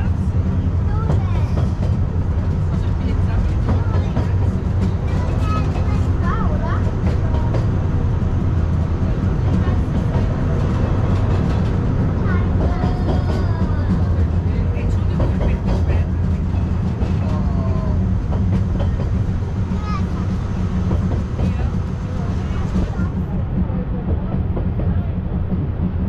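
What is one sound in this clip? A rail car rumbles steadily along its track.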